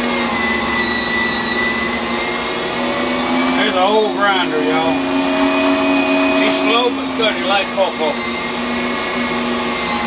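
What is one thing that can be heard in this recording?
An electric meat grinder motor hums steadily.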